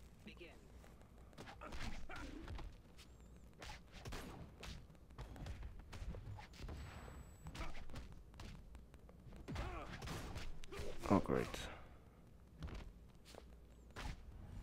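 Punches and kicks land with sharp thuds and whooshes.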